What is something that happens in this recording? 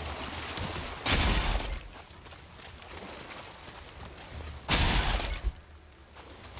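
A pickaxe strikes with loud crunching bursts.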